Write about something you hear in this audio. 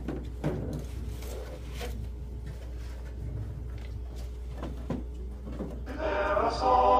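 A man speaks calmly in a room with some echo.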